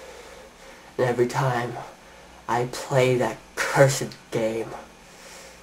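A young man speaks close to the microphone in short, lively bursts.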